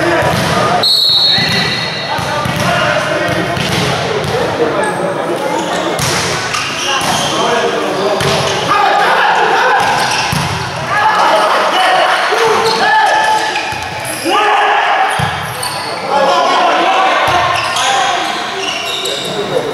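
Young men shout and call to each other across an echoing hall.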